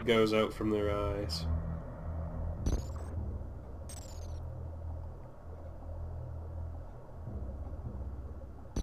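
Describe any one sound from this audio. Low, droning music rumbles steadily.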